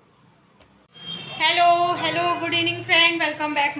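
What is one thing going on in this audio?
A woman speaks cheerfully close to the microphone.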